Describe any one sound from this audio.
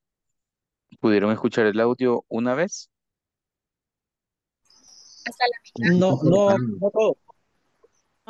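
A man speaks through an online call.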